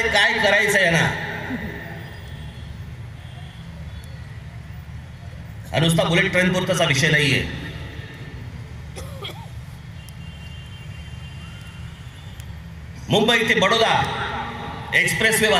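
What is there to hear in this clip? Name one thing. A man speaks forcefully through loudspeakers outdoors, echoing across a large open space.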